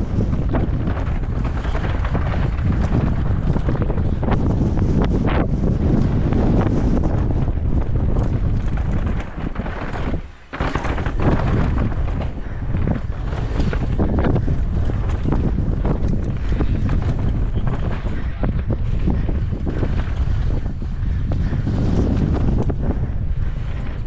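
A bike frame clatters and knocks over bumps.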